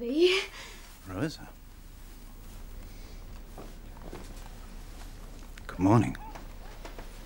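A man speaks briefly and calmly nearby.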